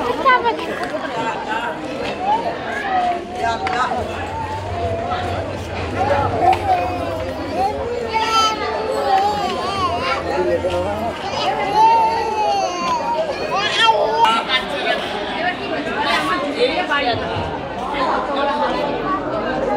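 A crowd of men and women talk all around, close by and outdoors.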